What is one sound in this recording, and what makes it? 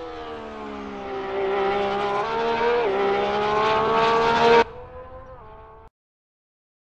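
A racing car engine roars at high revs, its pitch rising and dipping with gear changes.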